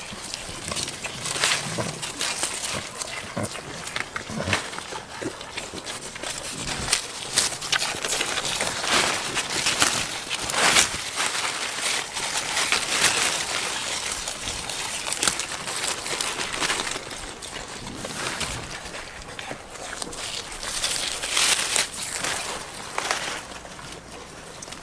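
Goats tear and munch leaves close by.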